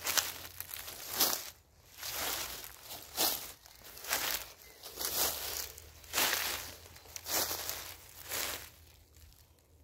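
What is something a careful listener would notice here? Footsteps swish and crunch through dry leaves and grass at a steady walking pace.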